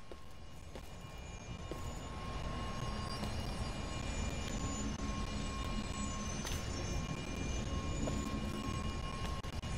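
A deep magical hum drones steadily.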